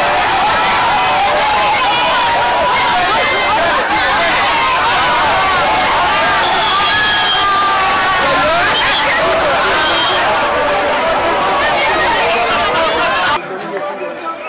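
A large crowd of men and women cheers and shouts outdoors.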